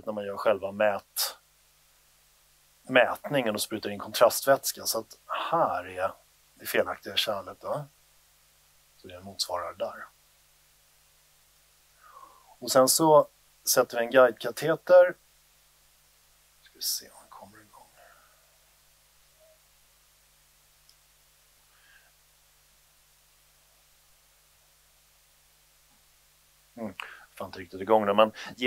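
A man speaks calmly into a microphone, with pauses, in a room with some echo.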